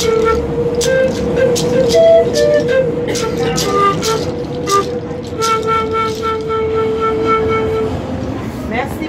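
A pan flute plays a steady, wavering melody close by.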